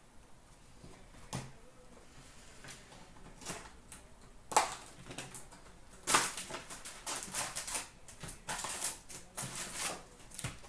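Cardboard boxes are handled and tapped.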